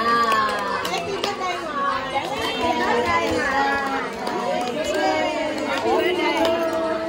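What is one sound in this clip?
Several women sing together cheerfully close by.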